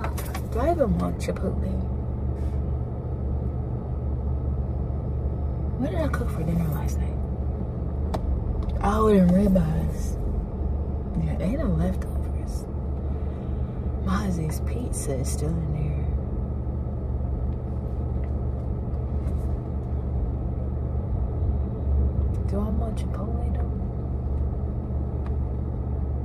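A low engine hum drones steadily inside a car.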